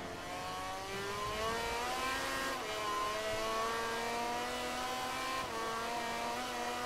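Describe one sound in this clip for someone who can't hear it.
A motorcycle engine revs high and climbs in pitch, dropping briefly at each gear change.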